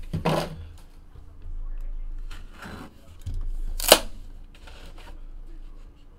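A cardboard box lid slides and taps on a table.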